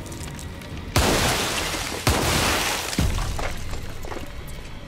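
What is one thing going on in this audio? A loud blast booms and rumbles.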